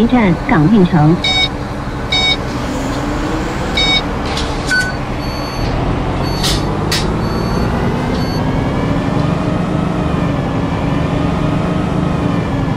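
A bus engine drones steadily and slowly rises in pitch.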